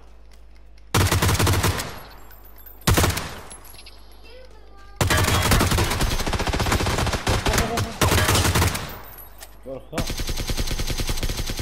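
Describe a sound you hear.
Rifles fire in loud rapid bursts.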